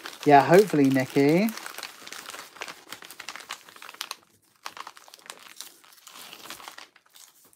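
A padded paper envelope rustles and scrapes against a table.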